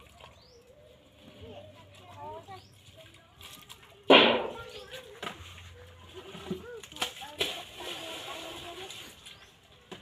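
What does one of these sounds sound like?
Young children talk softly nearby.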